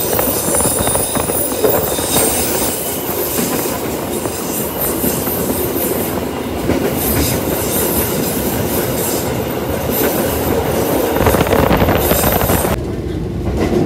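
A train roars loudly, echoing inside a tunnel.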